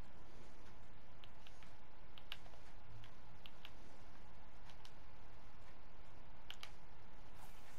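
A fishing reel clicks as its line is wound.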